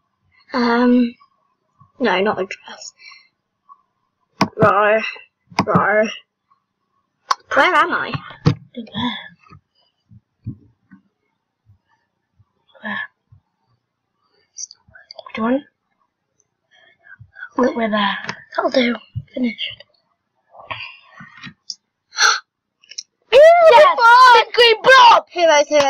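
A young girl talks with animation, close to a microphone.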